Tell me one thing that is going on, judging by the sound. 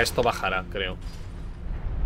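A young man speaks animatedly into a close microphone.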